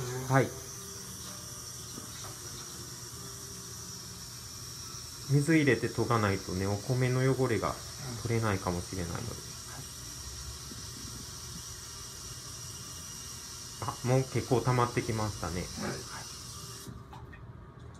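Water runs steadily from a tap into a pot.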